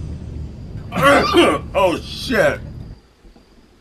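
A man speaks with emotion.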